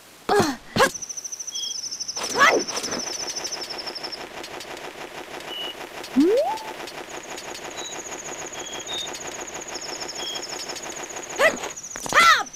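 Quick footsteps patter steadily across hard ground.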